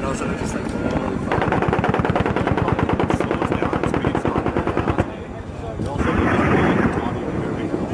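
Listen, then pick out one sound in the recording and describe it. Explosions boom on a hillside.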